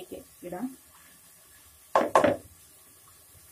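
Rice pours and patters into a plastic bowl.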